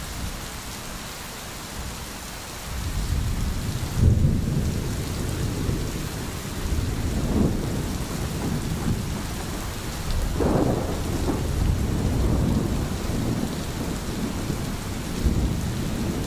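Rain falls steadily on trees and a roof.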